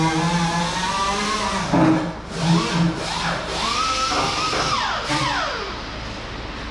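A power drill whirs in short bursts, speeding up and slowing down.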